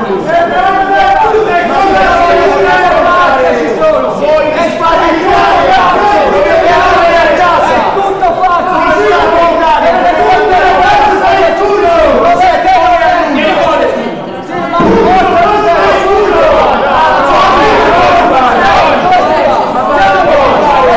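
A woman shouts back angrily.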